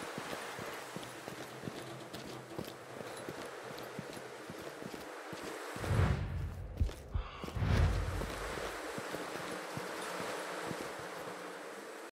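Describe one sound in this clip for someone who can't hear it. Footsteps clank on metal stairs.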